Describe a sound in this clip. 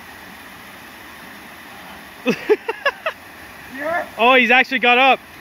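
A small waterfall splashes steadily into a pool.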